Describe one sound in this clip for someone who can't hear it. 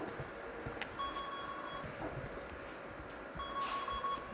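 A card reader beeps with a steady electronic tone.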